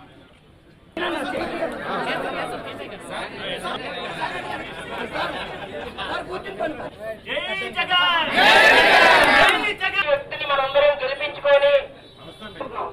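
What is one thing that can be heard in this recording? A man speaks with animation among a crowd.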